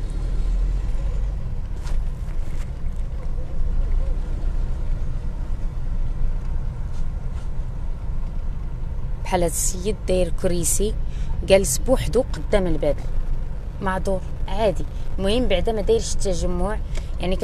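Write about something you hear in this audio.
A car engine hums steadily as the car drives slowly.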